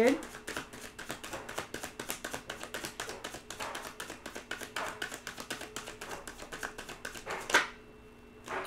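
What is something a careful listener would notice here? Playing cards are shuffled with quick, rapid riffling.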